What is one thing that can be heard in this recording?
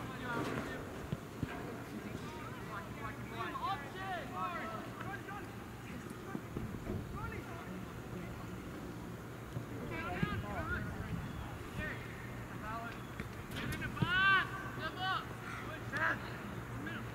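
Young players shout and call out across an open outdoor field.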